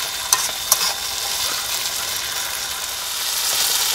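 A metal spatula scrapes and clatters against a wok.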